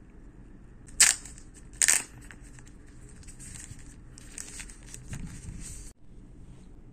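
A plastic wrapper is peeled off a phone.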